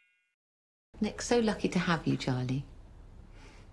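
A middle-aged woman speaks softly and warmly, close by.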